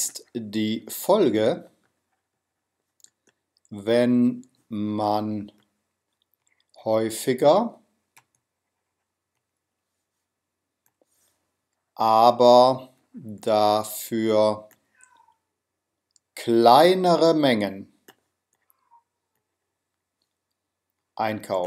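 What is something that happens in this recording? A man speaks calmly and slowly into a close microphone, with pauses.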